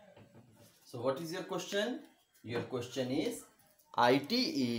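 A man speaks up close, explaining calmly.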